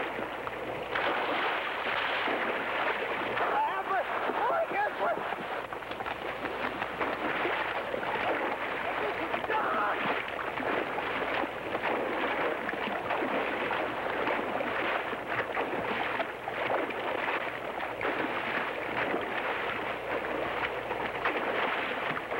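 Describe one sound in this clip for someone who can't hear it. A horse splashes through deep water.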